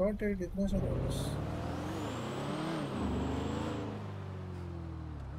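A car engine hums and revs as a car drives along.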